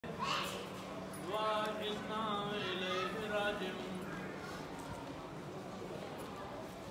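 Voices murmur softly in the distance.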